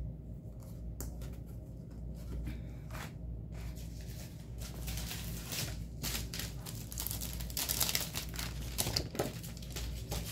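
Paper cards rustle and slide as they are handled.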